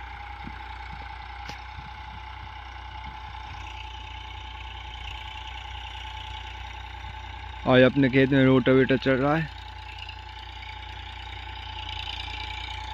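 A tractor engine drones steadily nearby.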